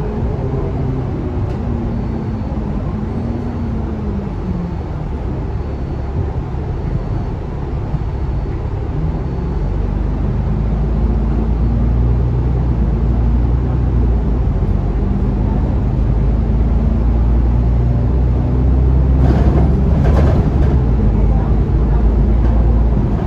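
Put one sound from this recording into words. A bus interior rattles over the road.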